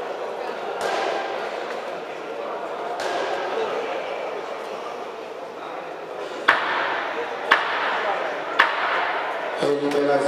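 A man talks to a boxer up close in a large echoing hall.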